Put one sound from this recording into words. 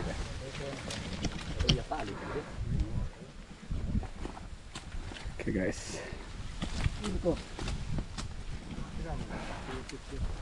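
Branches and leaves rustle and snap.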